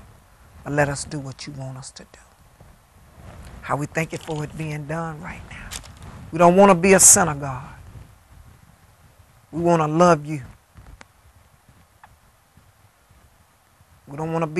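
An elderly woman speaks slowly and earnestly into a close microphone, pausing between phrases.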